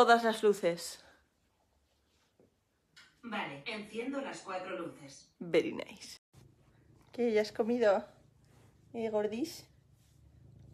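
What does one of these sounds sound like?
A young woman talks close by in a soft, casual voice.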